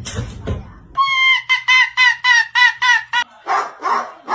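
A small white dog yaps in quick, high, repeated cries.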